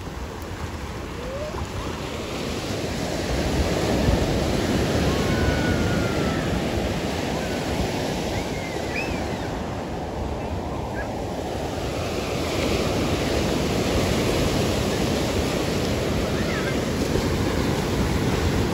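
Waves wash and break on the shore.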